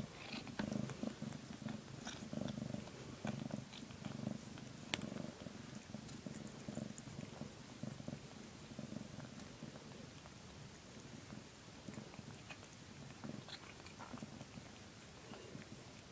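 A cat licks a kitten with soft wet sounds.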